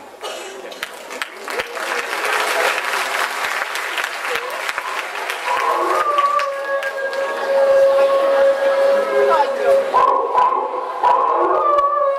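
A crowd of people chatters and cheers loudly in a large room.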